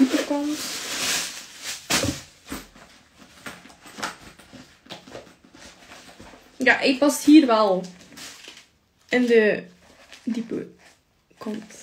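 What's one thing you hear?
Plastic packaging rustles and crinkles.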